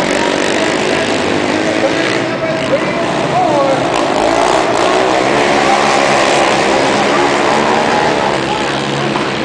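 Quad bike engines buzz and whine loudly around a large echoing hall.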